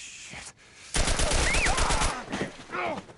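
A heavy body crashes to the ground with a loud thud.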